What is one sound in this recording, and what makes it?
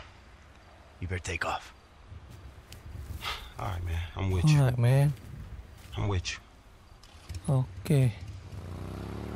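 A second man answers quietly, close by.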